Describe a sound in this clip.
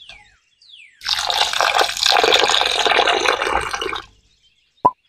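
Water pours into a glass bowl.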